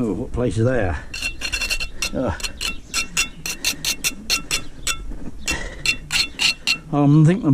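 A metal trowel scrapes against mortar and brick.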